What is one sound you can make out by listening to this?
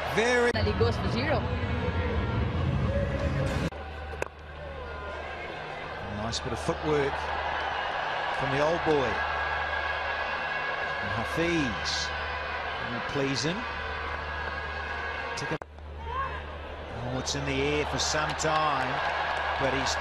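A large crowd cheers loudly in a stadium.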